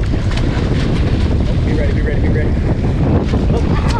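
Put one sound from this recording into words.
A fish thrashes and splashes at the water's surface.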